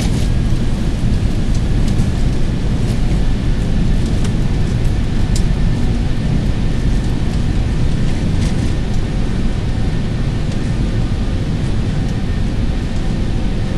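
A jet engine rumbles steadily as an airliner taxis.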